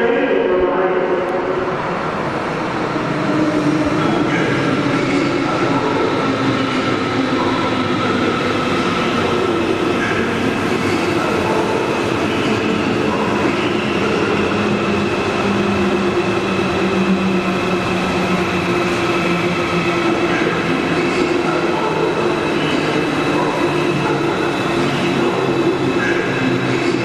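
Train wheels rumble and squeal on the rails.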